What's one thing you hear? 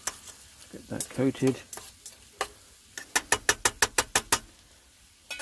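Metal tongs scrape and tap against a metal pot.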